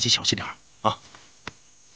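A man speaks briefly at close range.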